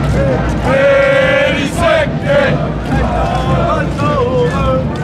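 A large crowd outdoors shouts and cheers loudly.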